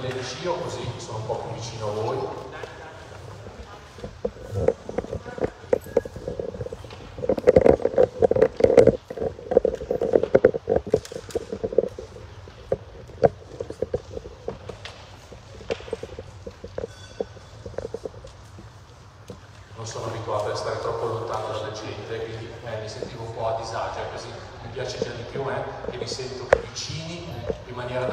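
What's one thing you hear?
A man speaks into a microphone over loudspeakers, echoing through a large hall.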